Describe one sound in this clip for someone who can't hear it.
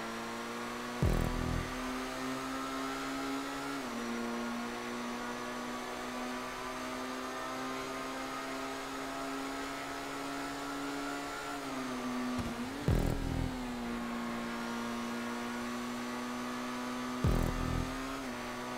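A racing car thumps over bumps in the road.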